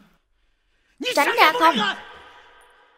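A man shouts angrily, close by.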